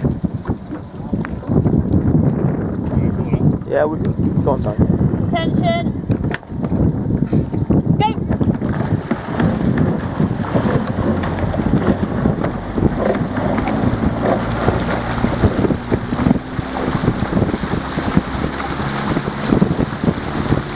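Oars dip and splash in the water in a steady rowing rhythm.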